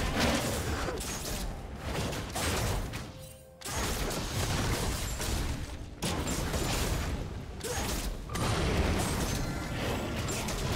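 Magic blasts and weapon hits crackle and thud in a fast fight.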